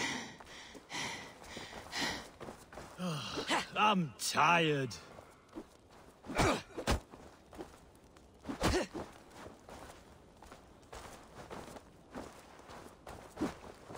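A young man talks into a close microphone.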